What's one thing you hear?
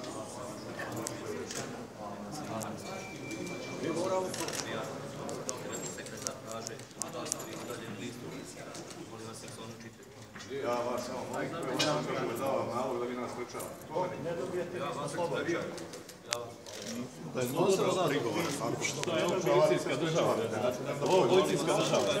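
A crowd of men talk over one another close by.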